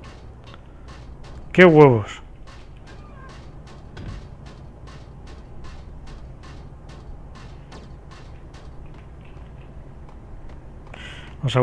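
Footsteps run quickly across a metal walkway.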